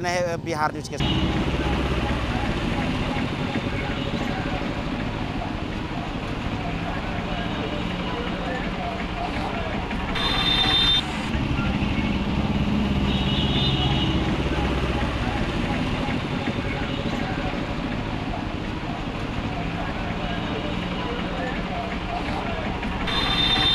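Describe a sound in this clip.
A motorcycle engine runs as it rides through water.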